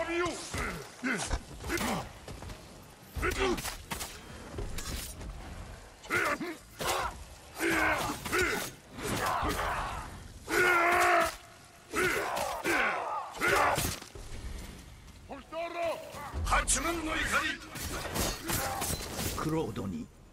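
Fiery blasts burst and crackle.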